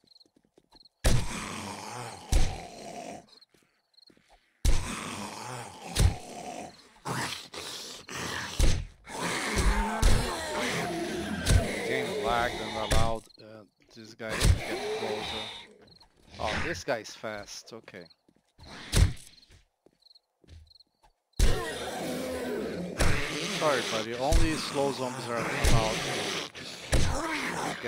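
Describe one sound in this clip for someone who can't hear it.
A weapon strikes flesh with heavy thuds.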